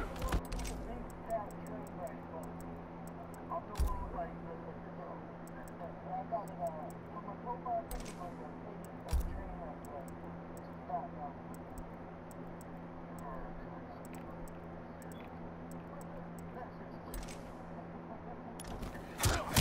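Soft menu clicks sound as options are selected.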